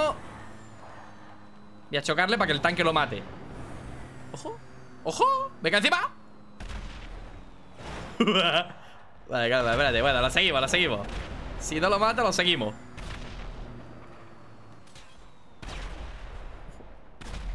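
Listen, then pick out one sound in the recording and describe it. A car engine roars in a video game.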